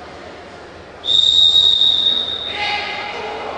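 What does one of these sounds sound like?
A referee's whistle blows one long sharp blast in an echoing hall.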